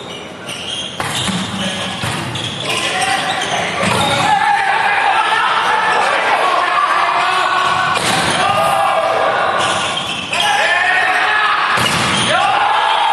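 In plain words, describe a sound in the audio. A volleyball is hit with sharp smacks in a large echoing hall.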